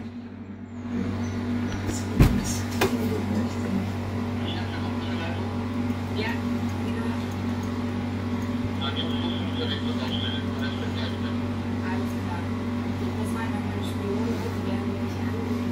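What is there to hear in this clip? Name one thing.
Music plays quietly from a loudspeaker.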